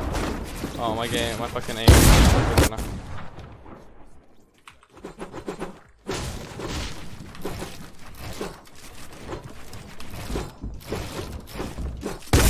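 Wooden building pieces are placed with rapid knocks and clatters.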